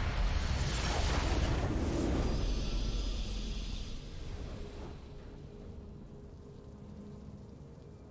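A triumphant victory fanfare plays and slowly fades.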